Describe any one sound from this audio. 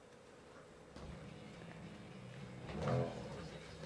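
A racing car engine hums and revs.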